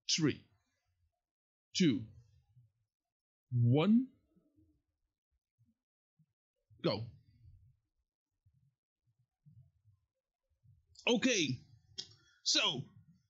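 A young man speaks close to a microphone in short, animated bursts.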